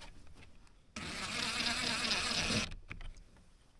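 An impact wrench rattles against metal.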